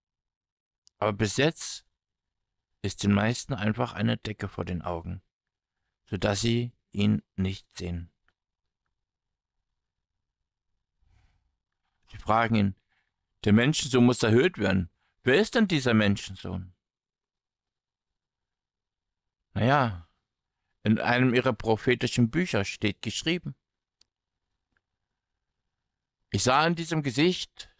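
A man speaks calmly with animation into a microphone, with pauses between phrases.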